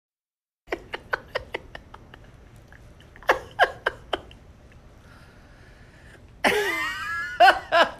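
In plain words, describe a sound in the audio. A man laughs heartily nearby.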